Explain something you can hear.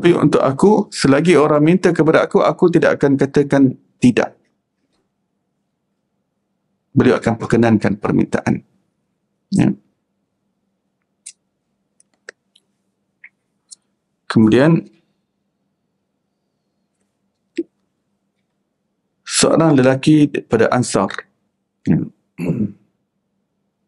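A man speaks calmly into a microphone, pausing often.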